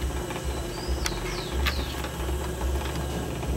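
Wet clay squelches softly under the potter's hands.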